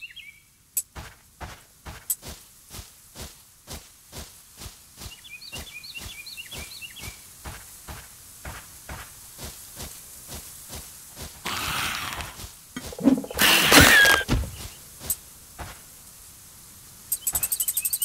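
Footsteps tread steadily on soft forest ground.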